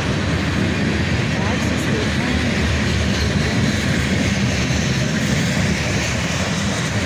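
A long freight train rumbles steadily past, its wheels clattering on the rails.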